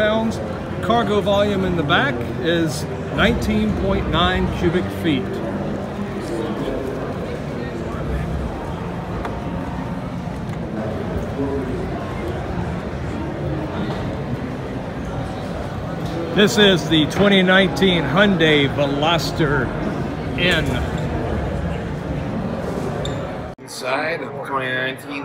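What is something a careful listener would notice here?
A crowd murmurs faintly in a large echoing hall.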